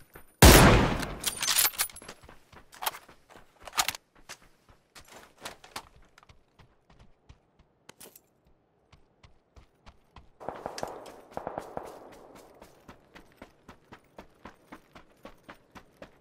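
Footsteps thud steadily on wooden floors and stairs.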